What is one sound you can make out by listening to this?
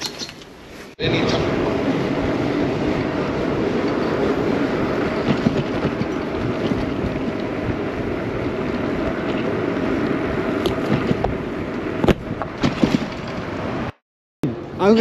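Wind rushes steadily past a bicycle rider.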